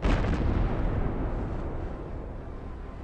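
A loud explosion booms and rumbles away slowly.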